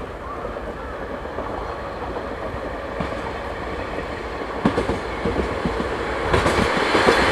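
A diesel locomotive rumbles past close by, pulling a train.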